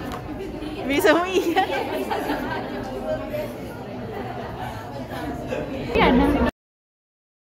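Young women laugh and chatter close by.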